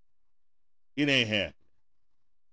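A man speaks briefly into a microphone, close up.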